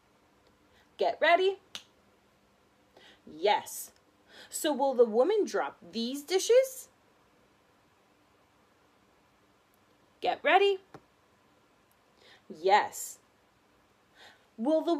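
A young woman speaks calmly and clearly, close by, in short phrases with pauses.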